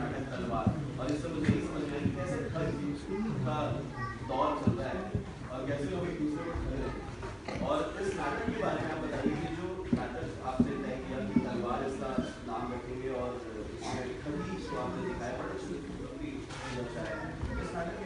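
A man speaks to a group, loud and animated, in a large echoing hall.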